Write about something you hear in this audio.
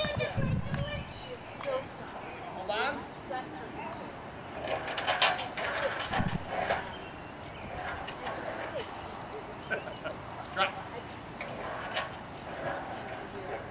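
A man talks encouragingly to a child.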